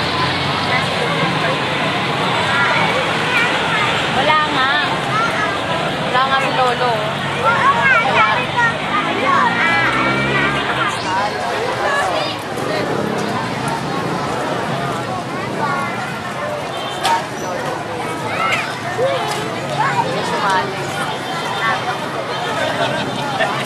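Footsteps shuffle on pavement as a group marches past.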